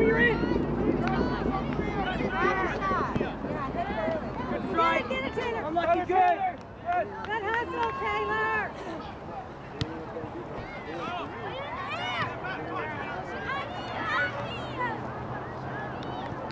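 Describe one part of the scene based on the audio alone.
Young girls shout and call out across an open field.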